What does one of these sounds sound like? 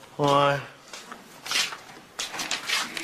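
Papers rustle as they are leafed through.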